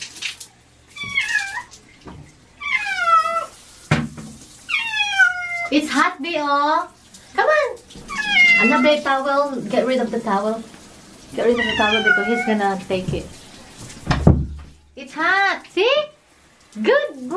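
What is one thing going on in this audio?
A cat meows loudly and repeatedly, close by.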